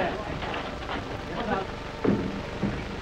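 A crowd of people talks and shouts nearby.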